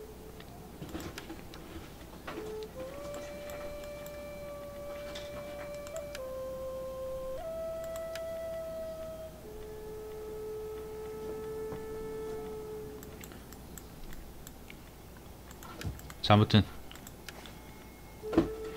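Soft menu clicks sound now and then.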